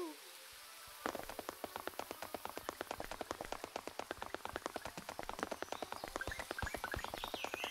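A game character's quick footsteps patter steadily across a roof.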